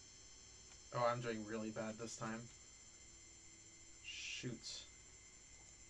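A man speaks briefly and casually into a microphone.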